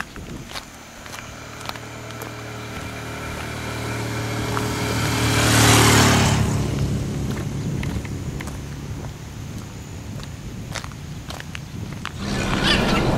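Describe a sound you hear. A vehicle drives past on a road, its engine swelling and then fading.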